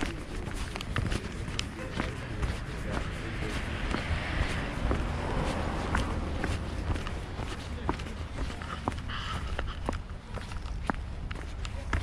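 Footsteps walk briskly on a paved path.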